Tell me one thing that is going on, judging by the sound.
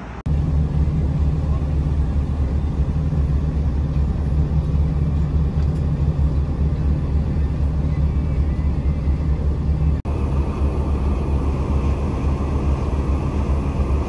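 Tyres roll on the road with a low rumble.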